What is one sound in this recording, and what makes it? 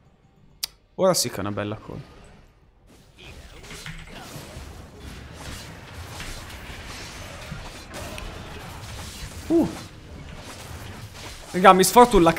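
A young man speaks close to a microphone, in short bursts.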